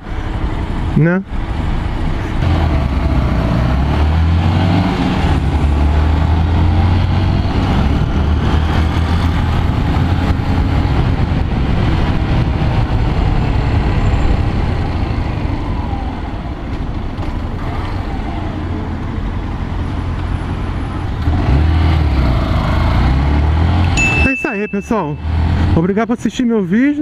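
Wind rushes past loudly as the motorcycle rides.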